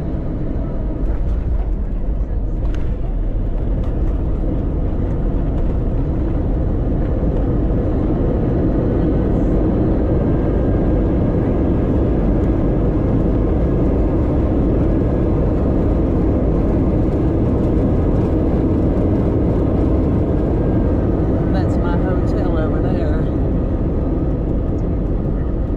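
Jet engines roar steadily inside an airliner cabin as it rolls along.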